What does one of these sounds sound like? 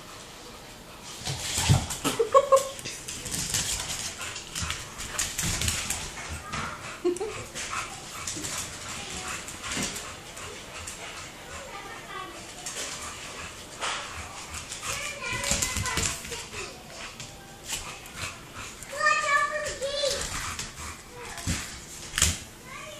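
A small dog's claws patter and scrabble on a wooden floor.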